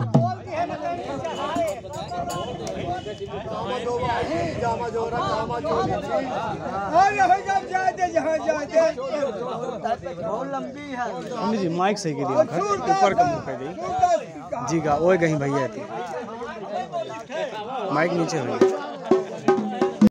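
A group of men sing loudly together.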